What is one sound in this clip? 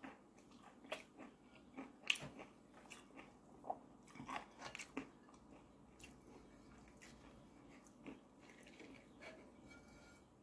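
A woman chews crunchy food close to a microphone.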